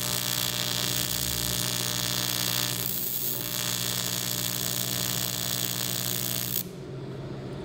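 A welding torch buzzes and hisses steadily, then stops abruptly.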